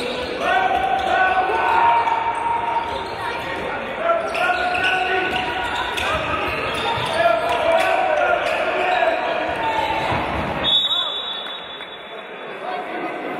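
A ball bounces on the floor.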